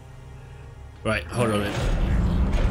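A young man speaks into a close microphone.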